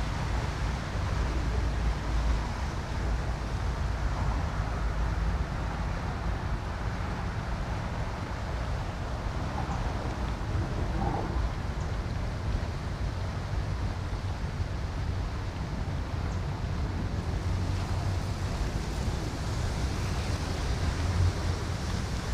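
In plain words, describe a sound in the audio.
Wind blows steadily and buffets outdoors.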